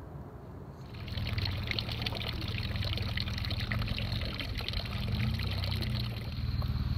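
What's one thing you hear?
Water trickles and splashes into a fountain.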